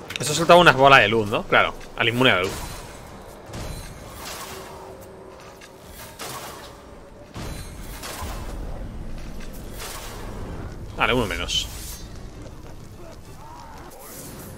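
Swords clash and blows strike in a fierce melee.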